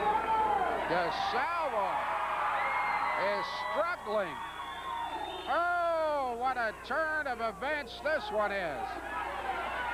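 Spectators whistle and jeer loudly.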